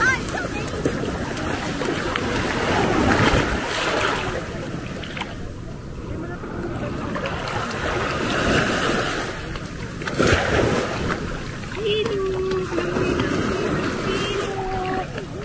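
Water sloshes and splashes around a man wading.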